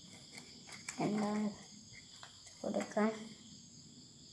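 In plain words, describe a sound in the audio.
Plastic crinkles and rustles as hands handle a bottle.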